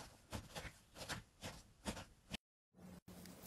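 Hands squish and squelch soft slime.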